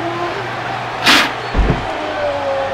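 A body lands hard on a mattress with a heavy thud.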